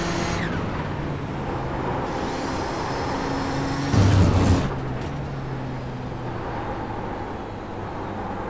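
A racing car engine roars steadily, rising and falling as the gears shift.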